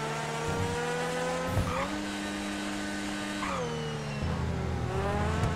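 A sports car engine roars steadily, shifting gears as it speeds along.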